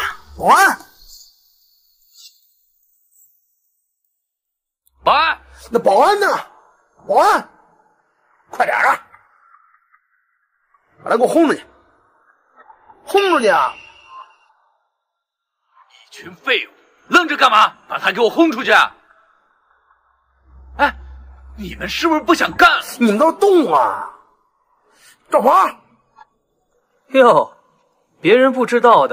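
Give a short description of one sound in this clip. A young man shouts angrily at close range.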